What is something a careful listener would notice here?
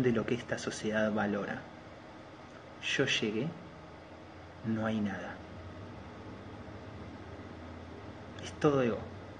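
A man speaks calmly up close, in short bursts with pauses.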